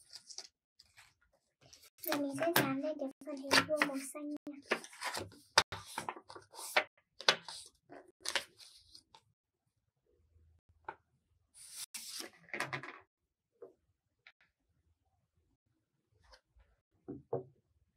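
Paper rustles as it is handled and folded.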